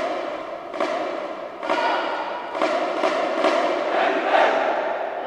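A marching band plays brass loudly in a large echoing hall.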